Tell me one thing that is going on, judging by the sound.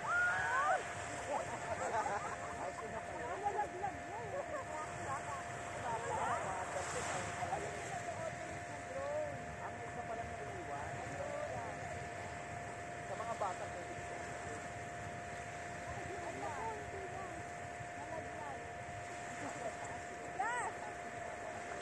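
Children and adults shout and chatter in the water at a distance.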